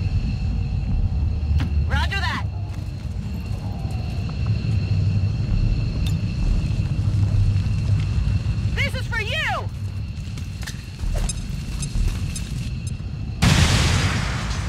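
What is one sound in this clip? A fire roars and crackles steadily.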